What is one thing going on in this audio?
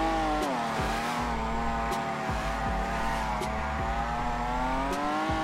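A car engine revs high and steady.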